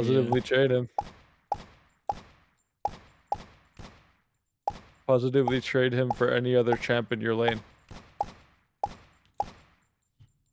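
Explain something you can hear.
A pistol fires single shots in quick succession.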